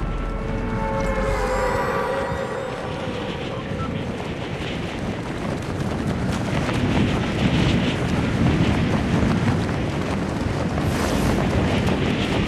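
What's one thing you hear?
Wind rushes loudly past a falling skydiver.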